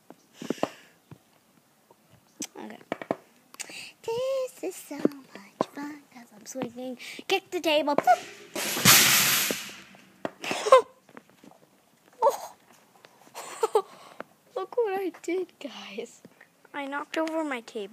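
A young girl talks and exclaims with animation close to the microphone.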